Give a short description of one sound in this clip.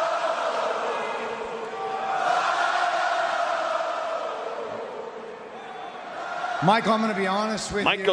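A large crowd cheers and chants loudly in a big arena.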